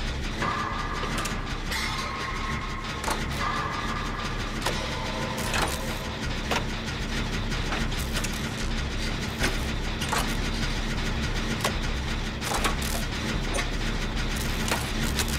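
Metal parts clank and rattle as an engine is worked on.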